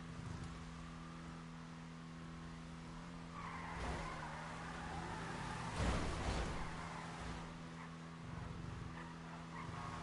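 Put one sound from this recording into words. A race car engine hums steadily.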